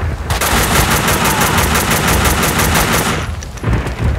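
A rapid burst of automatic gunfire rattles loudly.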